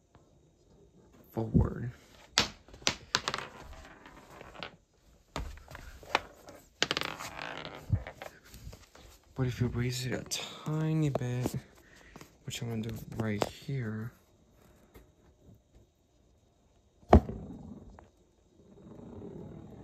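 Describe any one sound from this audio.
A glass marble rolls across cardboard with a low rattle.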